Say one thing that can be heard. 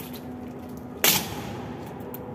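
Rifle butts strike the stone floor with a sharp knock.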